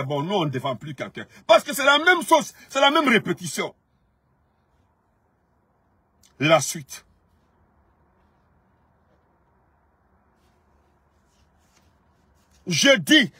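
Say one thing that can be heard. A man talks animatedly close to a phone microphone, pausing between phrases.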